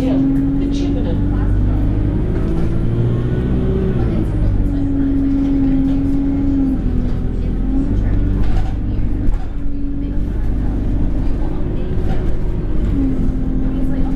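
A bus engine hums and drones steadily, rising and falling in pitch.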